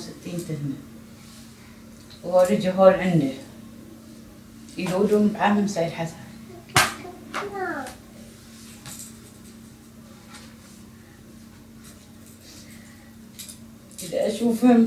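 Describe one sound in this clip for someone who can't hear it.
A woman speaks in short, emotional bursts close by, with pauses between.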